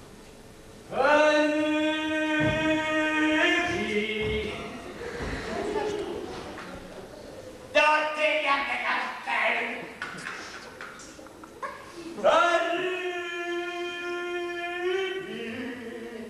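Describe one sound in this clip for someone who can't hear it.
A young man sings with feeling in a hall.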